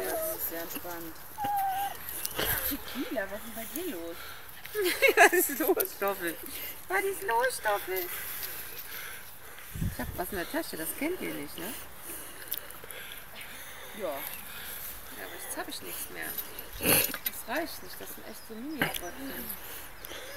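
A woman talks nearby in a lively voice.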